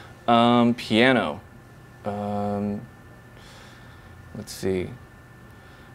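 A man speaks in long, drawn-out tones, close to a microphone.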